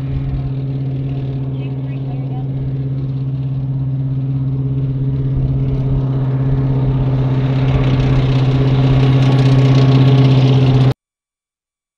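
A heavy armoured vehicle's engine rumbles and grinds, growing louder as it approaches.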